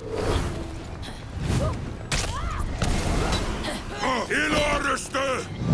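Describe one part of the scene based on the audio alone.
Weapons clash and bodies thud in a close fight.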